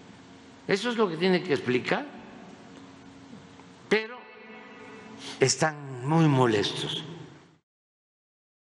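An elderly man speaks calmly into a microphone, in short bursts with pauses.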